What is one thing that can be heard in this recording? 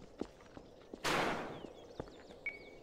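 A futuristic gun fires with a loud crackling whoosh.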